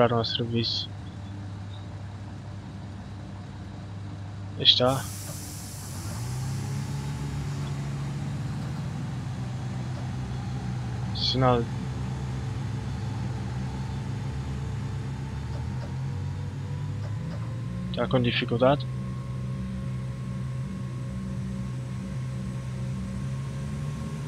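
Train wheels rumble over the rails.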